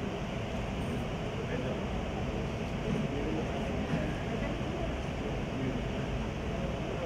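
A crowd of men and women chatters.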